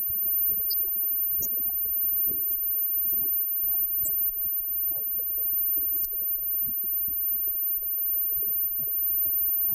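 A live band plays loud rock music.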